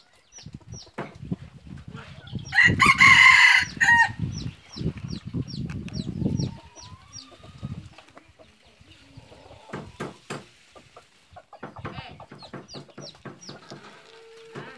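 Small caged birds chirp repeatedly.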